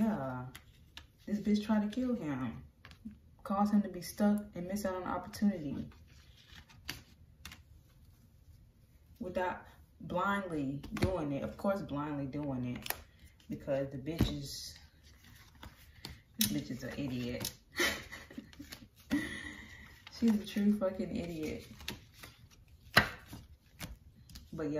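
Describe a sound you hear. Playing cards are slapped down onto a table.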